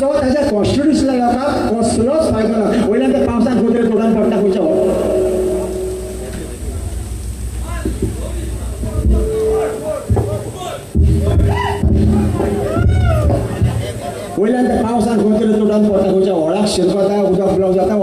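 A young man sings loudly through a microphone over loudspeakers.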